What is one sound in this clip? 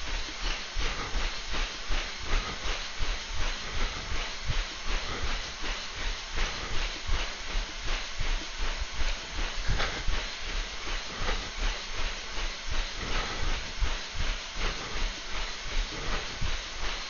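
A treadmill belt whirs steadily.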